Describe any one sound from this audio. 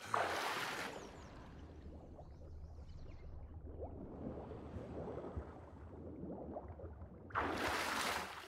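Water gurgles and bubbles underwater.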